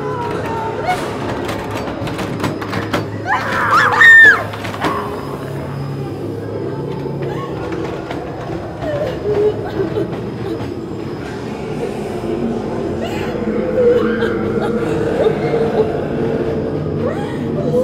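Young women talk and gasp nervously close by.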